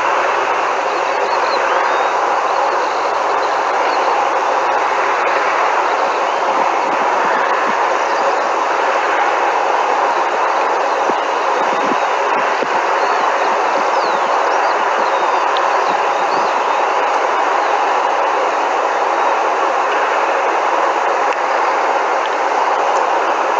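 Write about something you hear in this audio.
A helicopter engine and rotor roar steadily in the distance, outdoors.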